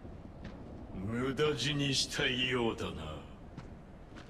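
A man speaks slowly in a deep, menacing voice.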